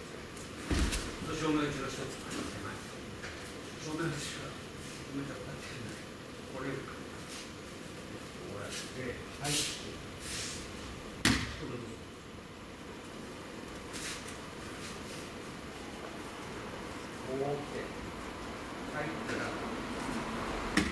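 A man speaks calmly in a large echoing hall.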